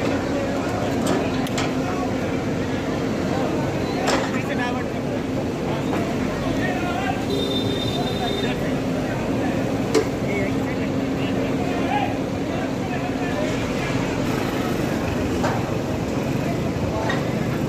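A backhoe engine rumbles steadily nearby.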